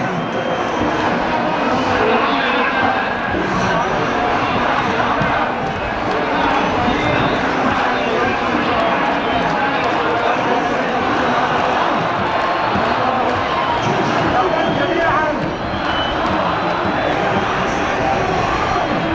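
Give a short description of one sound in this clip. A large crowd of men and women chatters and shouts loudly outdoors.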